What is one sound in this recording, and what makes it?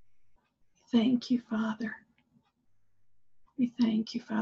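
An older woman speaks calmly and close by over an online call.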